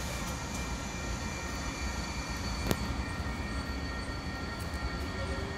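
A light rail train rumbles slowly along the tracks.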